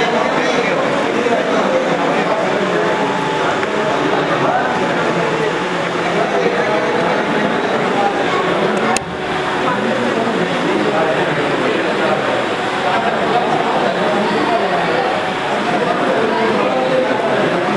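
A crowd of men and women chatter at once nearby.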